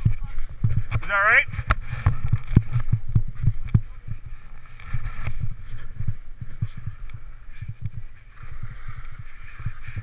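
Ski poles thud into soft snow.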